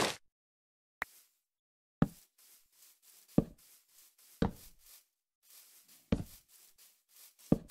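Sharp knocks of blocks being broken ring out one by one.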